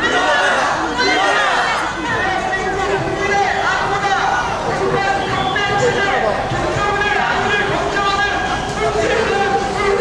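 A crowd of marchers chants and shouts together outdoors.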